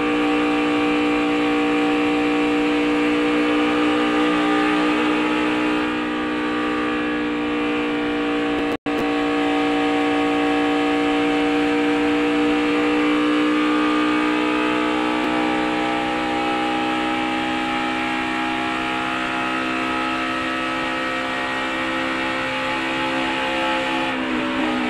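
Wind rushes past a speeding car.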